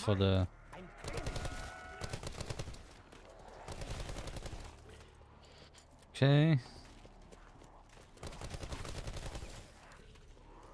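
Gunfire bursts in quick rapid shots.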